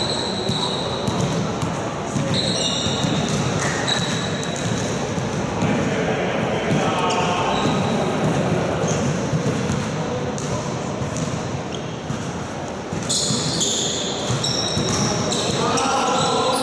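Young men call out and shout across a large echoing hall.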